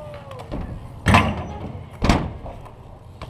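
A bike lands hard on concrete with a loud clack.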